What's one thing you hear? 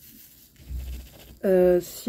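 Tiny plastic beads rattle softly in a tray.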